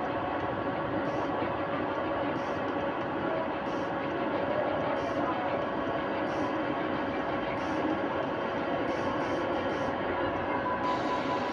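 A short electronic blip sounds each time a game menu selection changes.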